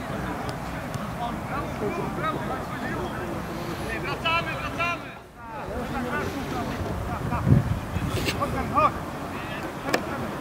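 Players shout and call to each other across an open field.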